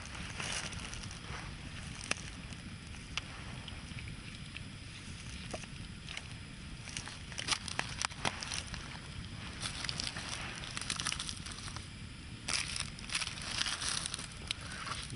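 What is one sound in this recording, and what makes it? Flames roar softly in a fire.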